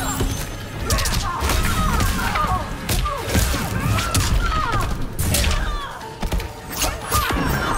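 Punches and kicks land with hard, rapid thuds and smacks.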